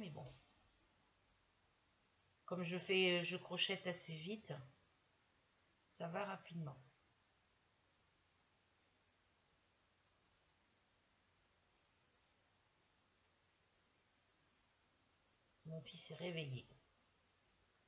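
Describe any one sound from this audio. An elderly woman speaks calmly and close by, in short bursts.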